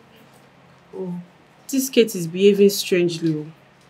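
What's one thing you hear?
A woman speaks with irritation up close.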